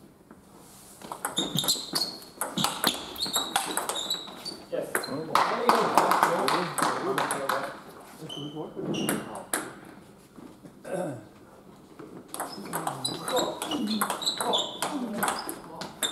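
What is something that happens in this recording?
A table tennis ball clicks back and forth off paddles and the table in a quick rally.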